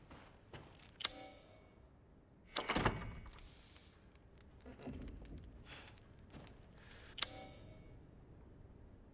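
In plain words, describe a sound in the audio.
A short chime sounds as a menu opens.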